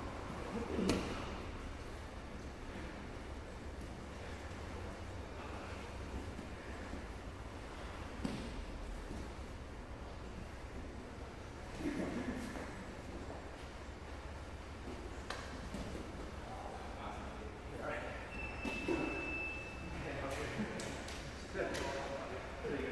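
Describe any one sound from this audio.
Bodies thump and shuffle on padded mats in a large echoing hall.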